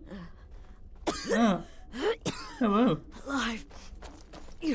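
A woman speaks weakly and breathlessly.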